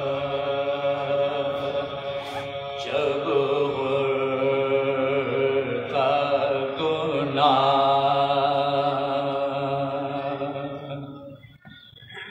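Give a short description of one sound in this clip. A group of men join in the chanting in unison.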